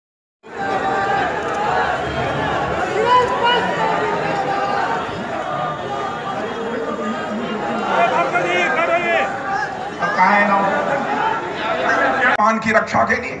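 A crowd of men chatters and cheers loudly.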